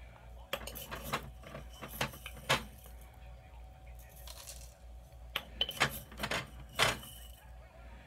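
A spoon scoops and taps against a glass jar.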